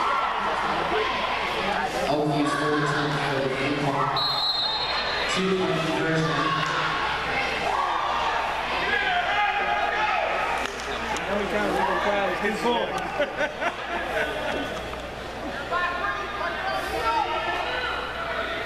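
Players shout and call out across a large echoing indoor field.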